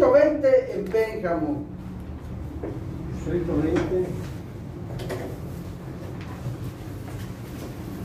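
Several men murmur and talk in the background.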